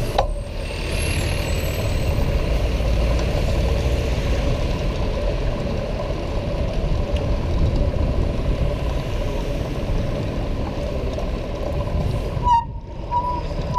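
City traffic hums in the background.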